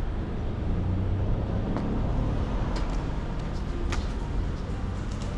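Wind rumbles outdoors across a microphone.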